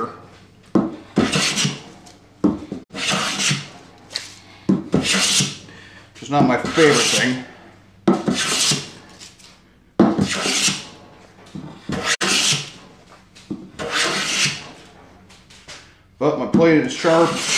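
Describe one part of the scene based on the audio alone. A hand plane shaves wood in repeated long strokes.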